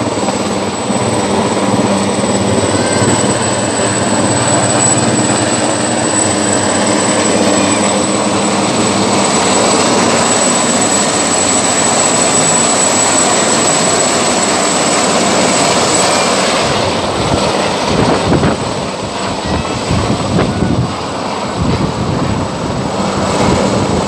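A helicopter's rotor thuds loudly overhead, with a steady engine whine.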